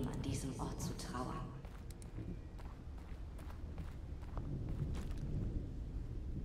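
A young man talks quietly into a microphone close up.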